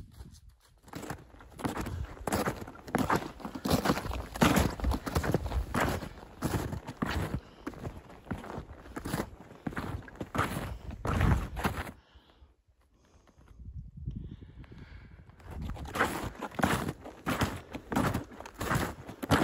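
Footsteps crunch through snow close by.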